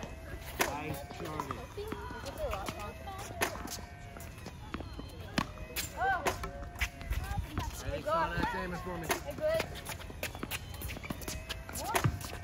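Tennis balls pop off rackets in sharp hits.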